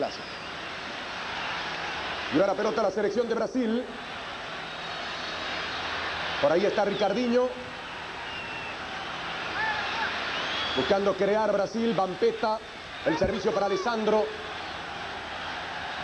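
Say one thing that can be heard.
A large stadium crowd roars and murmurs steadily in the distance.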